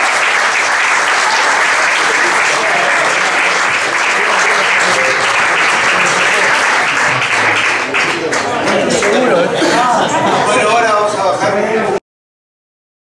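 A violin plays a melody.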